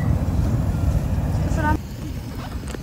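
A gas burner roars loudly overhead, then cuts off.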